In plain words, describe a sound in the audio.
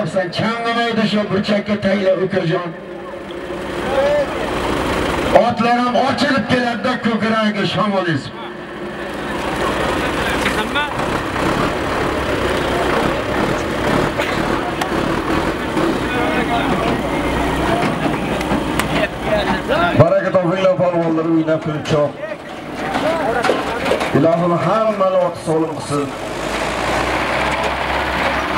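Men shout and call out loudly nearby.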